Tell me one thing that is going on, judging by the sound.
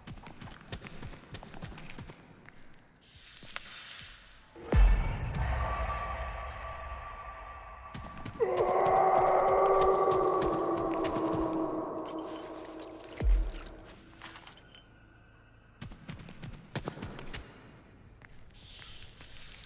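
Footsteps thud quickly across creaking wooden boards.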